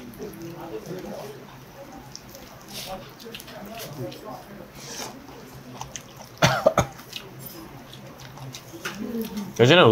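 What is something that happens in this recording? Chopsticks clink against dishes.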